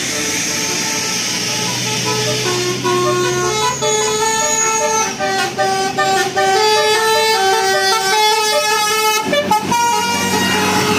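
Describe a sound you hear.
A bus horn plays a loud, quick melody.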